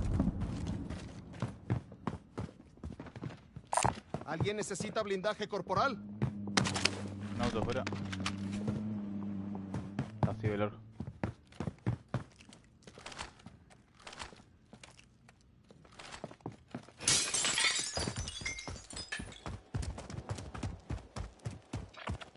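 Quick footsteps run over a hard floor.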